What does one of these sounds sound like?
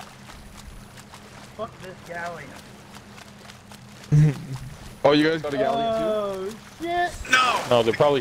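Water splashes gently as a swimmer moves through it.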